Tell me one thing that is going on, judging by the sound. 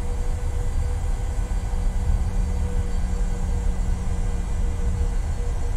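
Jet engines hum and rumble steadily as an airliner taxis.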